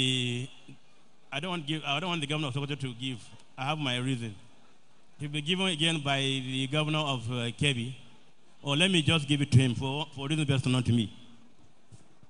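A man speaks loudly with animation through a loudspeaker in a large echoing hall.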